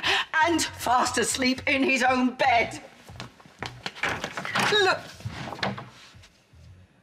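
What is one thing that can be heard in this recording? An older woman shouts angrily.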